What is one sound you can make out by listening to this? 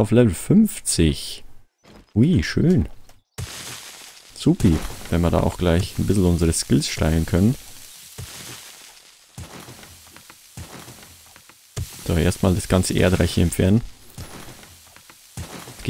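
A shovel strikes rock with dull thuds.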